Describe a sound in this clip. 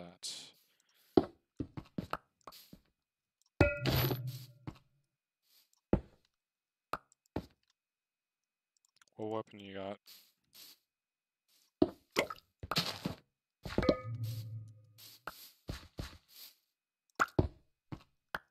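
A stone block breaks apart with a crunching clatter.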